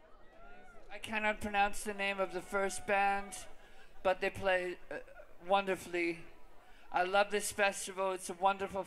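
A young man sings loudly through a microphone.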